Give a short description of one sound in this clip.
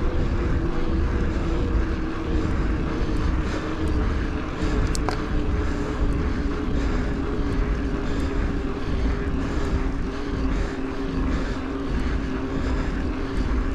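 Bike tyres hum on smooth asphalt.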